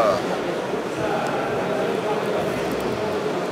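Water trickles from a filter into a plastic cup.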